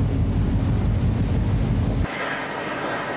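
Water churns and splashes in a ship's wake.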